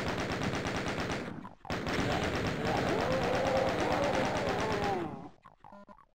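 A machine gun fires rapid bursts of shots.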